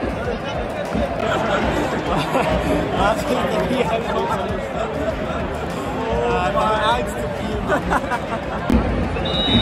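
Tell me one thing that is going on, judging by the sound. Two young men laugh and talk close by.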